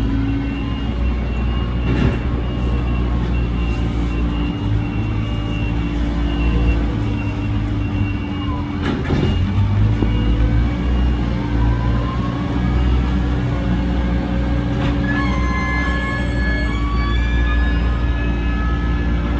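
A diesel engine of a front loader rumbles and idles nearby.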